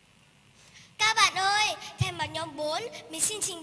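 A young girl speaks clearly into a microphone in a large hall.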